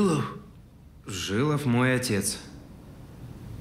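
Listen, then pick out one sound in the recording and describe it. A younger man speaks firmly.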